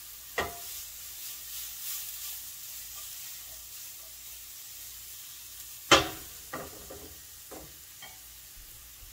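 A pan clatters on a metal grate as it is shaken.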